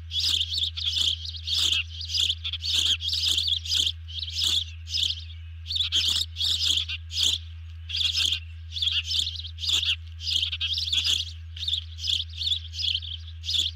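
A large bird calls with sharp, high, repeated whistling chirps close by.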